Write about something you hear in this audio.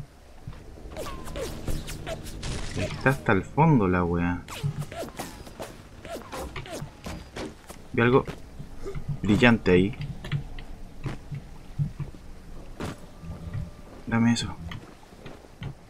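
A young man talks through a headset microphone with animation.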